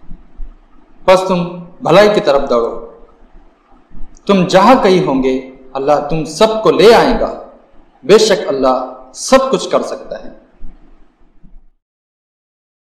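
A young man chants in a melodic voice, close to a microphone.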